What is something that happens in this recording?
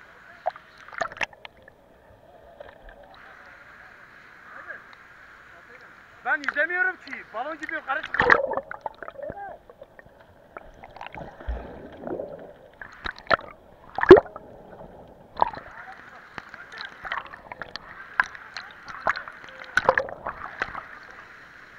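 Water splashes and sloshes close by in sudden bursts.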